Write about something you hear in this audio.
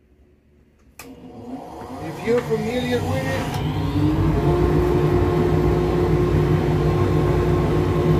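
A workshop machine motor starts up and hums steadily.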